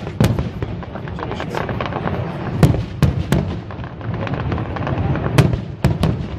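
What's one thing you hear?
Fireworks crackle and fizzle steadily.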